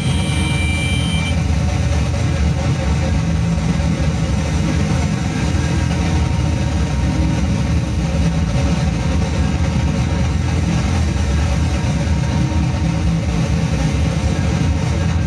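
Distorted electronic synthesizers and effects pedals drone and rumble in a noisy jam.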